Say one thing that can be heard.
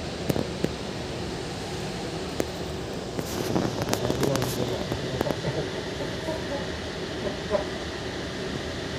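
A train carriage rumbles steadily along the tracks.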